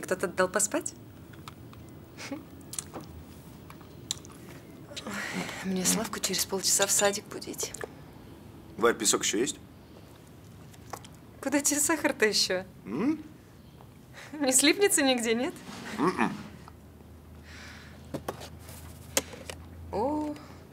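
A young woman talks and laughs softly, close by.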